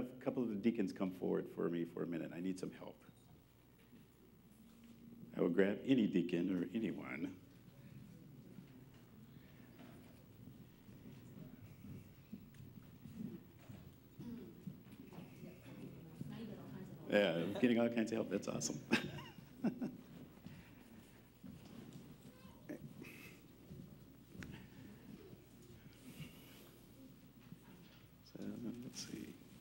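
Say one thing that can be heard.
A man speaks into a microphone in a large echoing room, with pauses.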